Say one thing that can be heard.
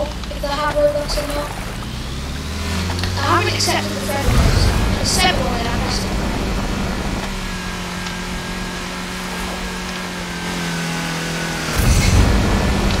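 A game car engine roars and revs higher as it speeds up.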